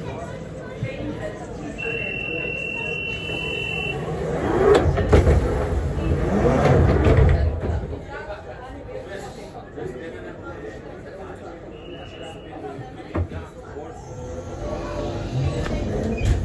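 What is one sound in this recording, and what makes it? A train rumbles and rattles as it pulls away from a station.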